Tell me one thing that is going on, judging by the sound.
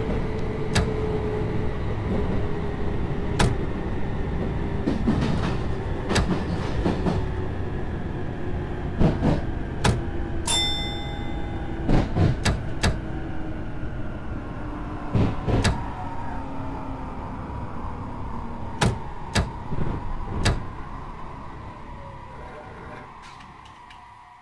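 An electric train motor hums and slowly falls in pitch as the train slows down.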